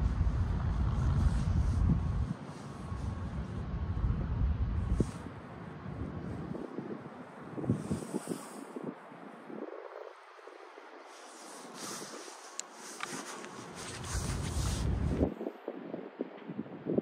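Wind buffets outdoors in gusts.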